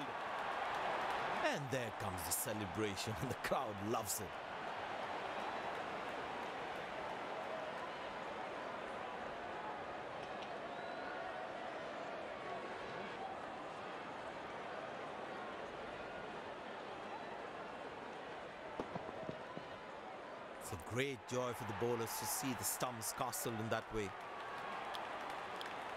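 A large stadium crowd murmurs and cheers steadily.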